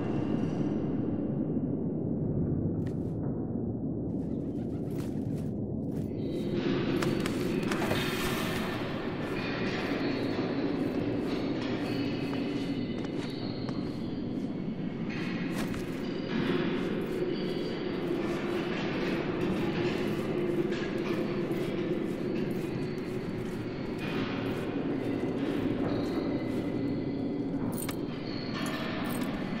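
Footsteps tap softly on a stone floor.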